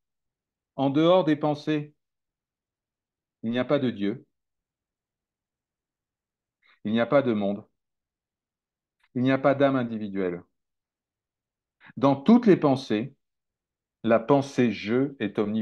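A man speaks calmly in short phrases with pauses, heard through an online call.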